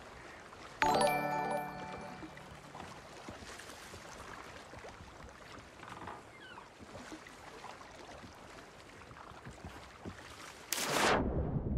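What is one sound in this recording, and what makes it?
Waves lap gently.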